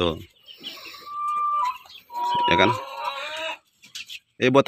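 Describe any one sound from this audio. Chickens cluck and call nearby.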